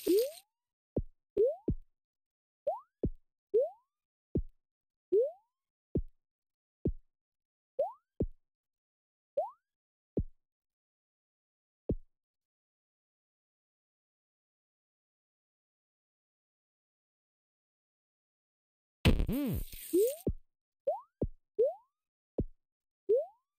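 A soft thud sounds as a game character lands.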